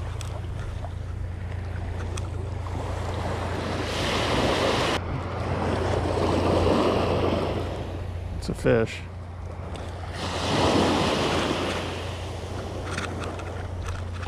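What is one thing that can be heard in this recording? Small waves wash onto the shore in rising and falling swells.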